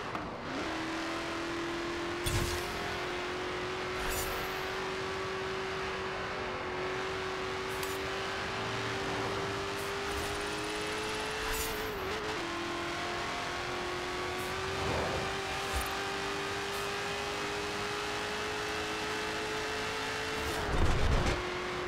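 A car engine roars steadily as it speeds up, with gear changes now and then.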